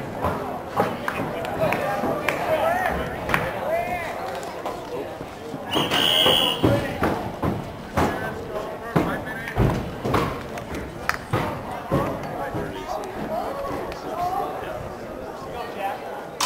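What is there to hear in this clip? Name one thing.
Young men shout across an open field outdoors.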